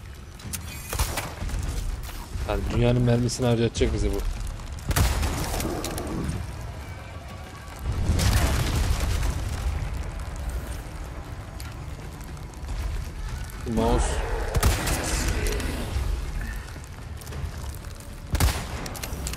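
A rifle fires with sharp loud cracks.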